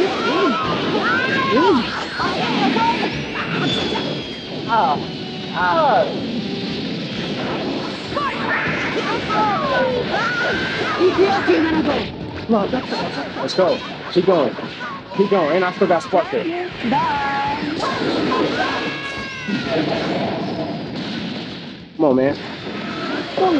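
Energy blasts and punches boom and crash.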